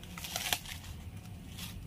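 Leaves rustle as a branch is pulled.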